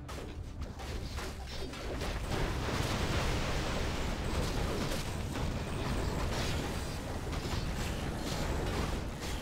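Swords clash and spells burst in a busy fantasy battle.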